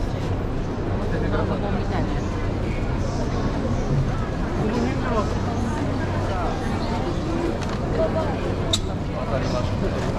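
A crowd of people chatter all around outdoors.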